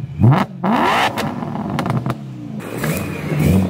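A sports car engine revs sharply and crackles.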